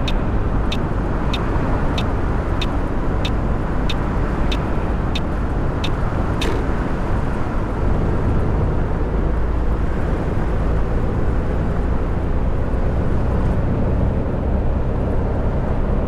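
A bus engine rumbles steadily at speed.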